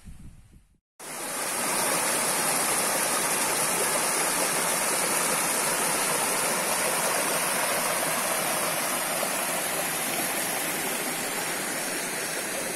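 Water rushes steadily over rocks in a shallow stream.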